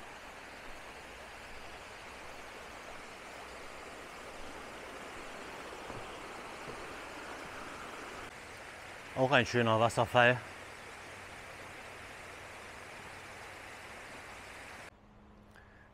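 A mountain stream rushes and splashes over rocks outdoors.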